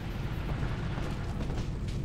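A fire crackles and burns low and steady.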